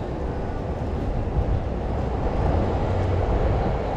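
Footsteps of a man walk past close by on pavement.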